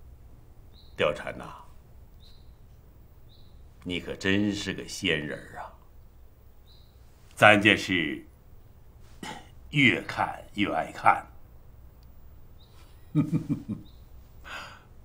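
An elderly man speaks slowly with a sly, pleased tone.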